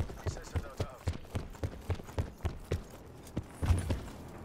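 A rifle in a video game fires rapid shots.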